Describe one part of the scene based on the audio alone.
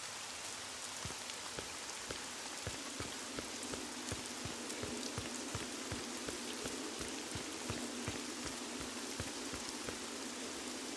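Footsteps walk on the ground.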